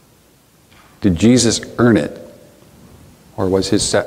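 A middle-aged man speaks calmly and earnestly nearby, with pauses.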